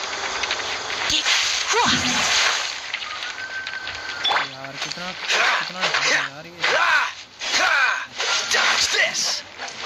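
A sword swishes and clashes in quick strikes.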